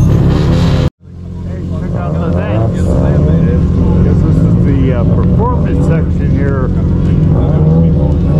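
Men talk casually nearby outdoors.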